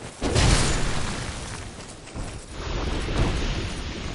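A heavy sword swings with a whoosh.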